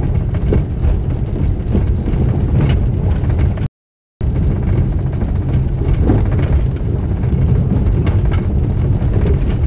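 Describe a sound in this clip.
A car engine rumbles steadily inside the car.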